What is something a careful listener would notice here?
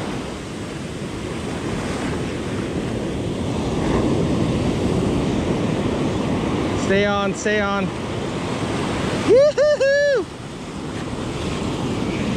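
Waves crash and wash up on a beach nearby.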